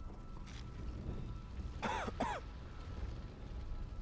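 A fire roars and crackles.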